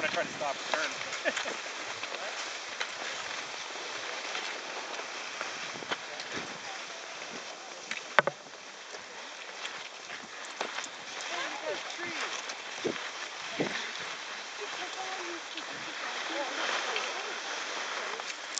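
Skis swish and scrape over snow.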